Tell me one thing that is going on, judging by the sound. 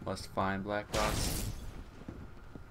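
A heavy thud lands on a rooftop.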